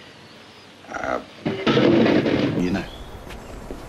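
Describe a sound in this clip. A young man speaks softly and casually, close by.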